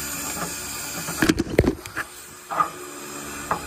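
Hands push a rubber hose onto a metal fitting with a few knocks and clicks.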